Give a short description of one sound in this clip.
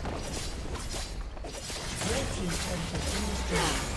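A game building explodes with a loud boom.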